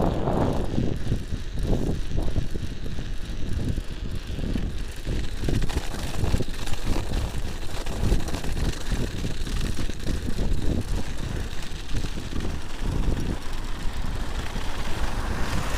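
Wind buffets loudly past the rider outdoors.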